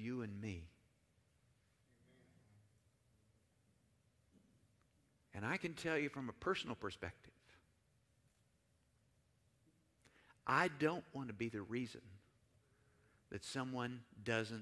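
An older man speaks calmly to an audience through a microphone, with pauses.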